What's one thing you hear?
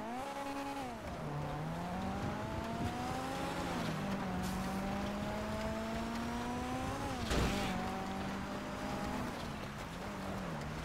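A car engine hums steadily and rises and falls in pitch as the car shifts gears.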